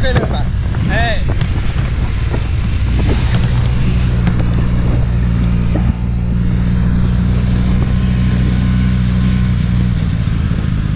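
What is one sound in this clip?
A snowmobile engine drones steadily close by.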